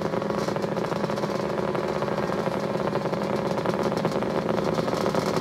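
A snowmobile engine idles loudly nearby with a steady buzzing drone.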